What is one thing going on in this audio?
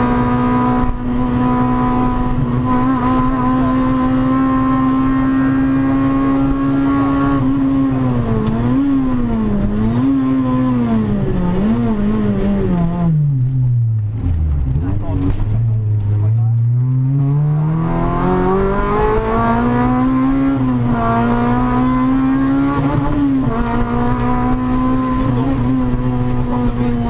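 A car engine roars loudly at high revs, drops sharply as the car slows for a corner, then climbs again as it accelerates.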